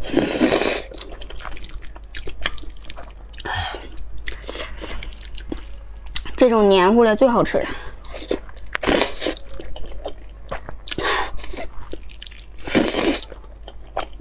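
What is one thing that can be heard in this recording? A young woman chews noisily close to a microphone.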